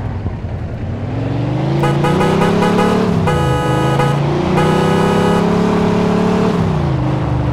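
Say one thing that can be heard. A car engine revs up, drops in pitch as the gears change, and revs up again.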